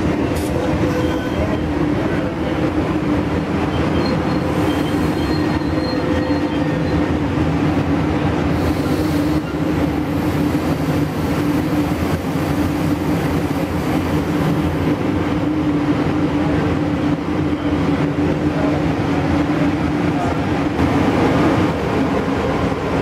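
A passenger train rolls past close by with a loud, steady rumble and clatter of wheels on rails.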